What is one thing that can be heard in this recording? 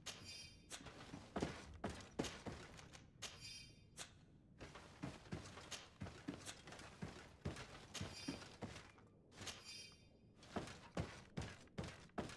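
Heavy footsteps thud on wooden floorboards.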